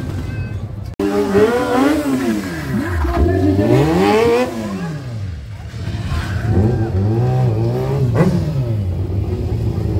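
A motorcycle engine revs hard, rising and falling sharply in pitch.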